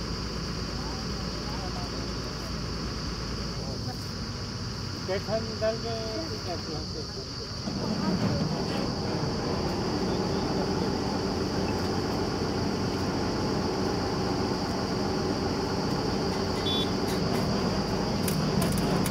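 A drilling rig's engine runs with a steady loud drone.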